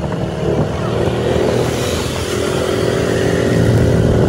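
A motorcycle engine rumbles close by as it is overtaken.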